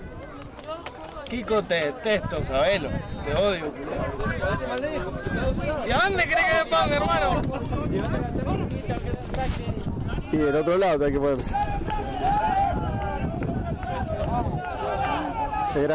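A crowd of spectators shouts and cheers nearby outdoors.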